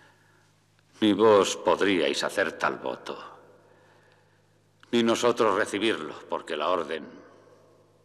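An elderly man speaks slowly and gravely.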